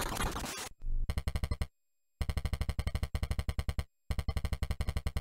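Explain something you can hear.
Short electronic beeps tick quickly as text is typed out.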